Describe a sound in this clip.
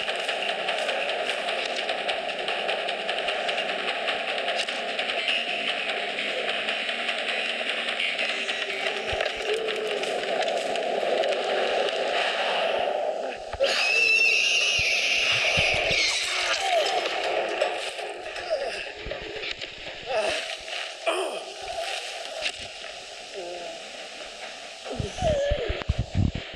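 Footsteps rustle quickly through tall dry stalks.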